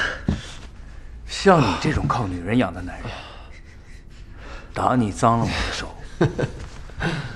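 A man speaks in a mocking voice.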